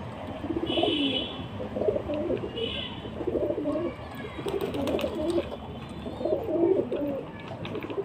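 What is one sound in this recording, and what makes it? Pigeons coo softly and repeatedly close by.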